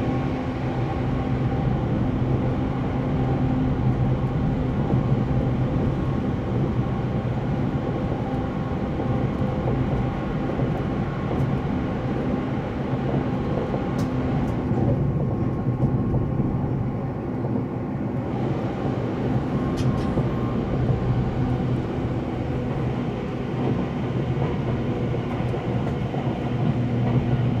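A train rumbles and hums steadily along the tracks.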